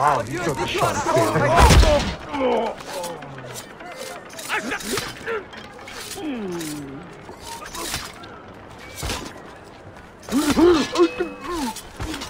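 Metal blades clash and clang in a scuffle.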